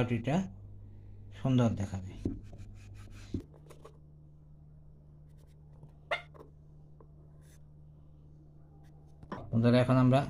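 A knife slices softly through dough.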